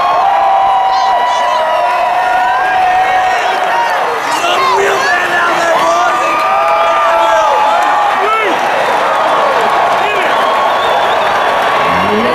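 A marching band's brass plays sustained notes.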